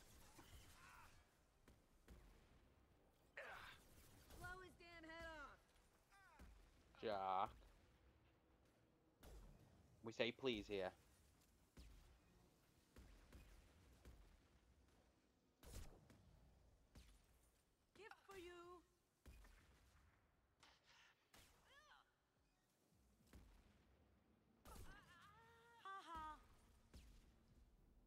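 Gunshots crack repeatedly in short bursts.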